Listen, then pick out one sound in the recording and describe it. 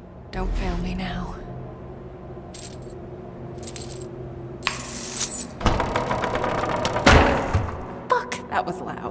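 Bolt cutters clamp onto a metal chain and snap it with a sharp clank.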